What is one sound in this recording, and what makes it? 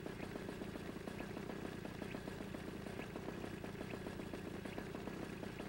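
A small kart engine idles with a rapid, steady putter.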